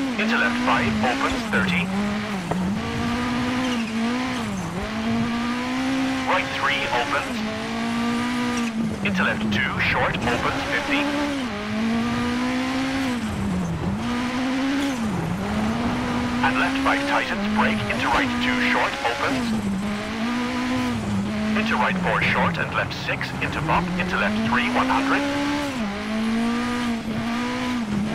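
Loose stones and gravel rattle against the car's underside.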